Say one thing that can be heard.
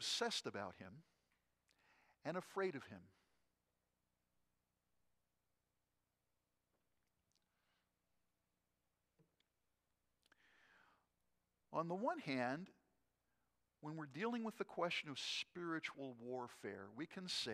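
An older man speaks with pauses through a microphone in a large room.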